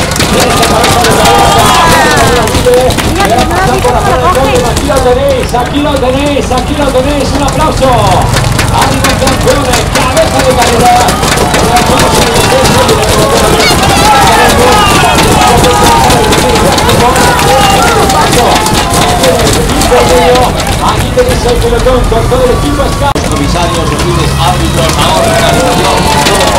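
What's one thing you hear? Men shout encouragement nearby.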